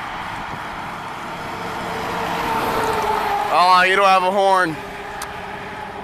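A box truck roars past close by.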